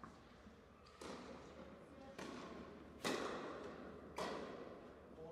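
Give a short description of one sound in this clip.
A tennis ball is struck hard with a racket, echoing in a large hall.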